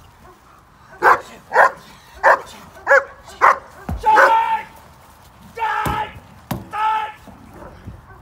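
A dog barks loudly in sharp bursts close by.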